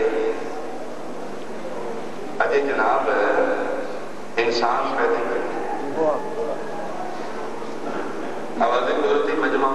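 A man speaks with passion through a microphone and loudspeakers, in a large echoing space.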